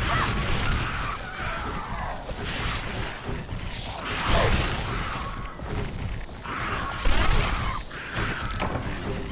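Heavy blows thud against a creature.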